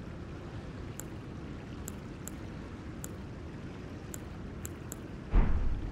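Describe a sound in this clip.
Short, soft menu clicks sound each time a selection moves.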